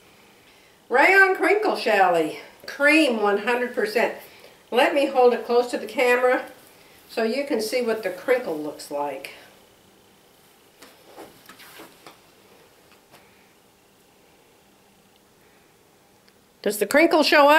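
An older woman talks calmly and close by.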